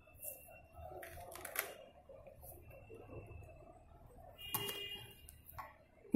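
Paper rustles and slides as a hand moves it.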